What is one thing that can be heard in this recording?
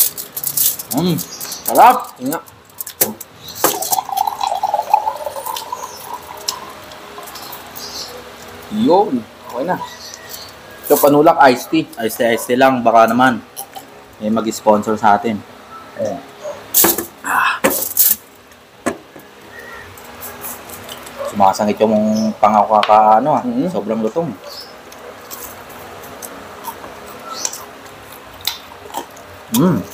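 Foil crinkles as hands pick at food.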